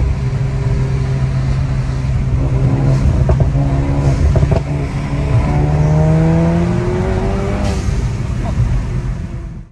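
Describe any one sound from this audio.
A car engine hums from inside the car, its pitch rising as the car speeds up.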